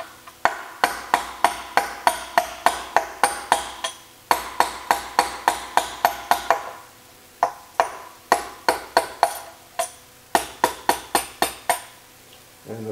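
A hammer taps rapidly on a metal punch with sharp, ringing clinks.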